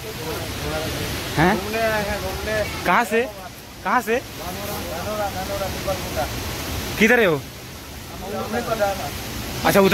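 Young men chatter and call out to each other.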